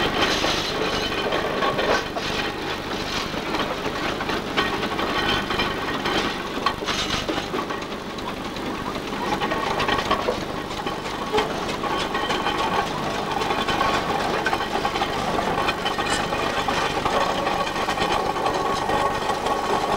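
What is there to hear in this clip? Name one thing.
A steam roller chuffs and rumbles slowly along a road.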